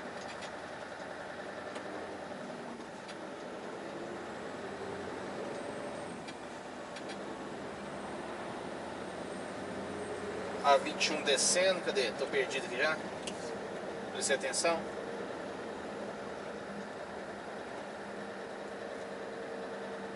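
A truck engine hums steadily from inside the cab while driving.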